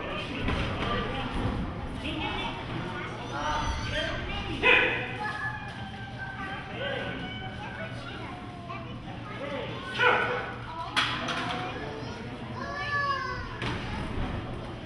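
A crowd of men and women shouts and cheers.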